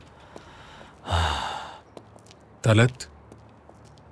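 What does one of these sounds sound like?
Footsteps scuff slowly on cobblestones.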